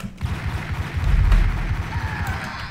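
Pistol shots ring out in a hallway.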